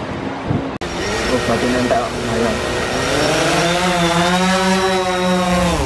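A drone's propellers whir and rise in pitch.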